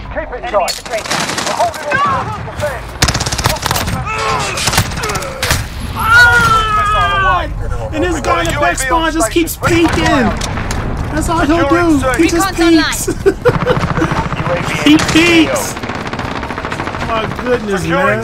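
A young man talks and laughs excitedly into a microphone.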